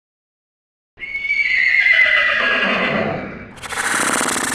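A horse neighs loudly.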